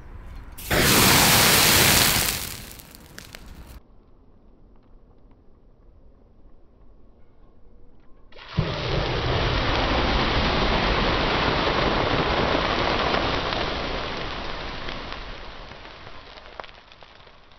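A burst of flame roars loudly outdoors.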